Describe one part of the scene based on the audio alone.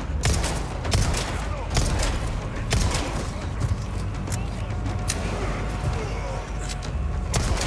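A pistol fires several sharp shots close by.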